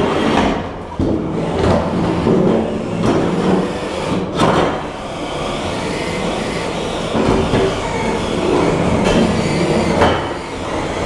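Fighting robots clash and bang against each other.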